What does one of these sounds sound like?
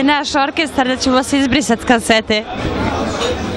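A woman speaks animatedly, close to a microphone.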